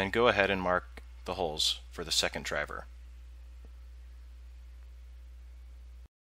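A plastic circuit board slides and taps on a perforated plate.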